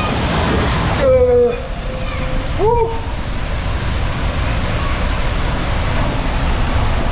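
Water rushes and rumbles through an enclosed slide tube.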